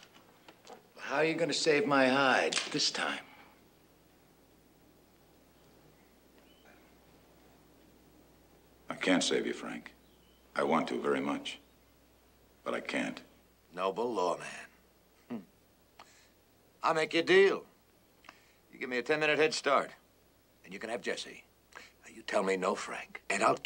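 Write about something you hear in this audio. A man speaks tensely nearby.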